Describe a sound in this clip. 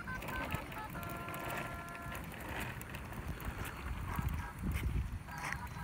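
Plastic wheels of a baby walker roll and rattle on concrete.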